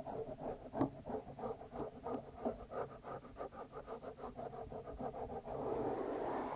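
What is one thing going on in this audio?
Fingers tap rapidly on a microphone up close.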